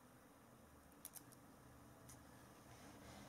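A small metal test clip clicks softly as it is handled.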